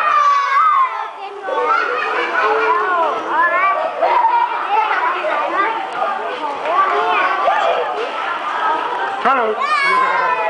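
Young children chatter and shout excitedly close by.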